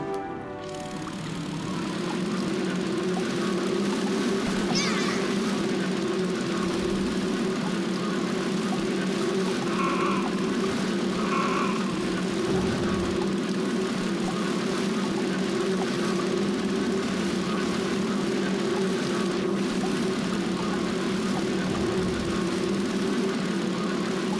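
An underwater vehicle's engine hums steadily.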